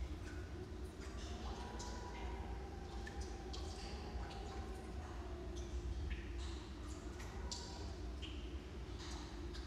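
Footsteps echo in a tunnel as a person walks away.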